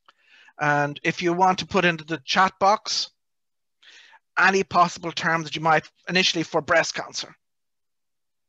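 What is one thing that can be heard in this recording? A middle-aged man speaks calmly into a headset microphone, heard over an online call.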